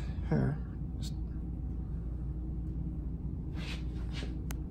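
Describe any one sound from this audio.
Scissors snip through hair.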